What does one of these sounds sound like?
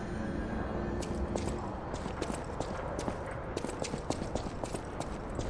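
Footsteps crunch quickly over gravel.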